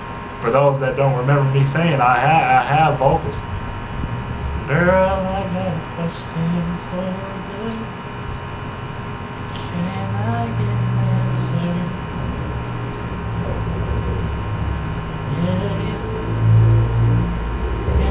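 A young man sings loudly and close by.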